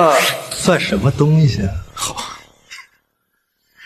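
A middle-aged man speaks excitedly, close by.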